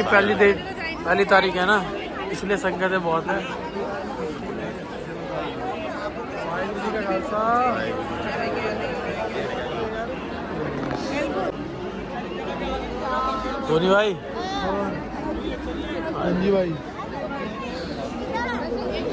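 A large crowd murmurs and chatters all around, outdoors.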